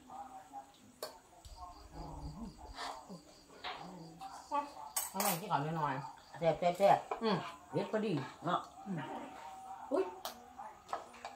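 Spoons clink against bowls.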